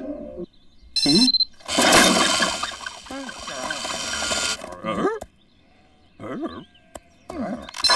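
A sheep bleats.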